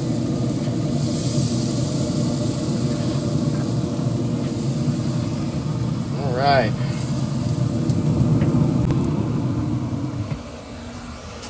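A grill fan hums steadily, close by.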